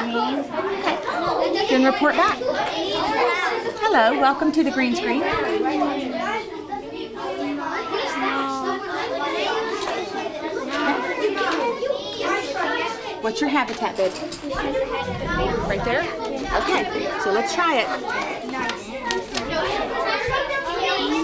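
A young boy speaks in a high voice.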